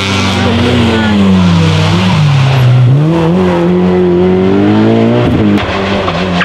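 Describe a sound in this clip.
A rally car engine revs hard as the car speeds up a road.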